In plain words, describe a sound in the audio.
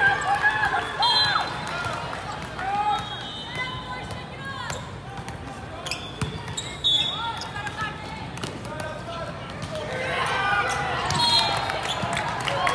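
Shoes squeak on a hard court floor.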